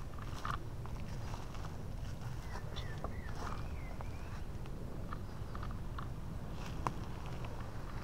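Footsteps crunch on leaves and twigs.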